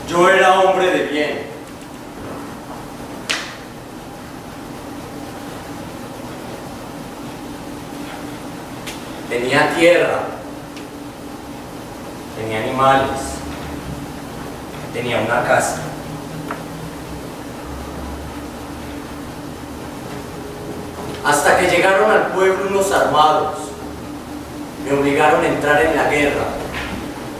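A man speaks loudly on a stage in short bursts.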